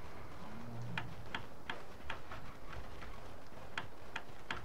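Hammers knock on wood in quick, uneven blows.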